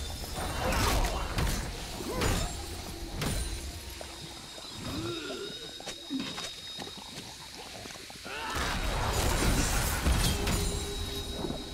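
Sword strikes clang in quick bursts.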